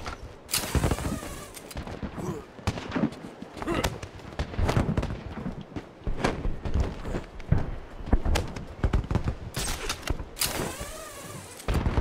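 Fireworks burst with dull booms in the distance.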